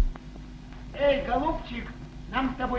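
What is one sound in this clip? A man speaks loudly through an old, hissy recording.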